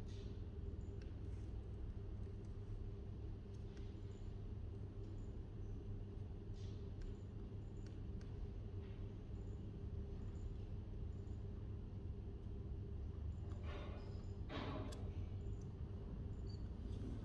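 Fingers tap softly on a laptop keyboard.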